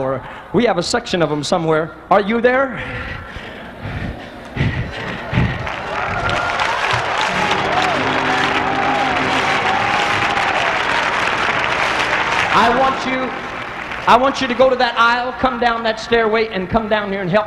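A man preaches with fervour through a microphone in a large echoing hall.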